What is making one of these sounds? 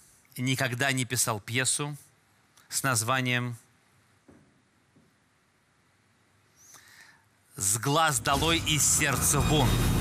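A man speaks calmly and expressively into a microphone.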